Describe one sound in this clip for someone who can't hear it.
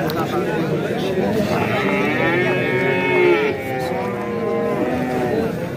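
A crowd of men talk loudly close by.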